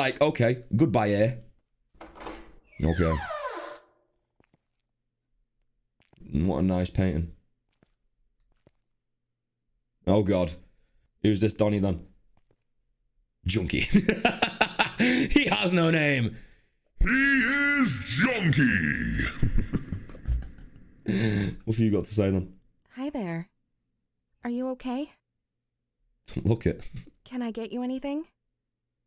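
A young man talks with animation into a close microphone, with pauses.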